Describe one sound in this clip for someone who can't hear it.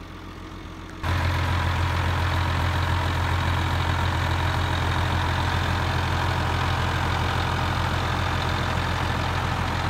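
A tractor engine idles with a steady, low rumble.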